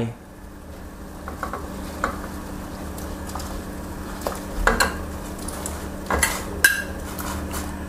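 Chunks of meat slide into a pot of water with soft splashes.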